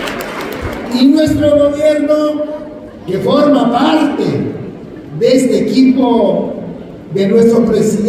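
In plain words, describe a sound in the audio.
A man speaks loudly into a microphone over loudspeakers in a large hall.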